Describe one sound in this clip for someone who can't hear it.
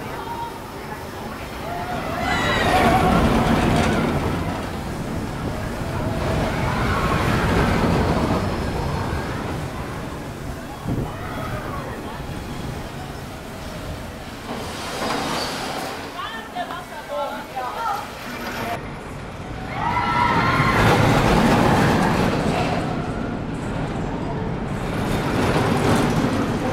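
Roller coaster cars roar and rumble past on the track.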